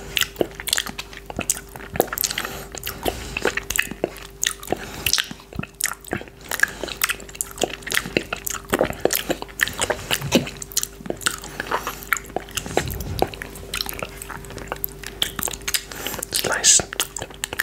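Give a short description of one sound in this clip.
A man chews and smacks his lips close to a microphone.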